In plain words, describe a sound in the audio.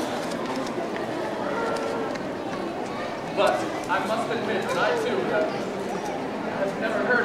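A crowd murmurs in the background of a large echoing hall.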